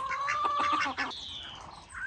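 A hen clucks nearby.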